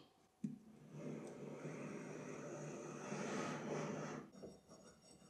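A heavy metal slide scrapes and grinds along a machine bed.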